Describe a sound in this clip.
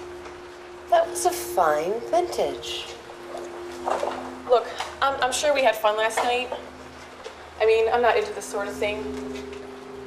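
A woman speaks in a low, tense voice close by.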